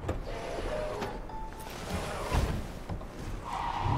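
A car door opens and thuds shut.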